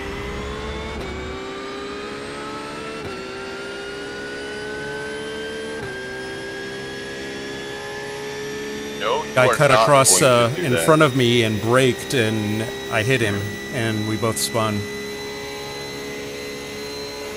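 A racing car engine drones steadily and rises in pitch through gear changes.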